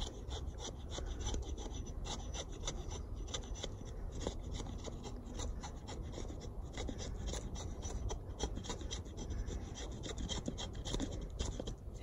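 A knife blade shaves and scrapes along a dry stick in quick, repeated strokes.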